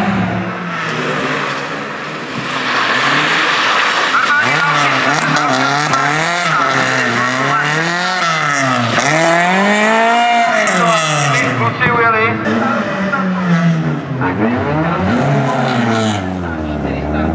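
A rally car engine revs hard, rising and falling as the gears change.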